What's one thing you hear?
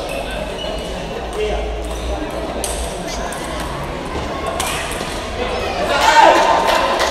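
Crowd murmur echoes in a large hall.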